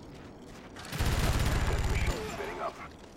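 Heavy gunfire rattles in a loud burst.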